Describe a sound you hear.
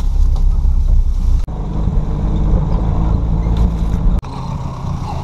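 A car engine rumbles loudly.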